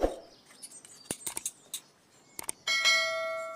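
Scissors snip through leather with sharp clicks.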